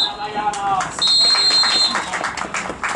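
A referee's whistle blows a long shrill blast.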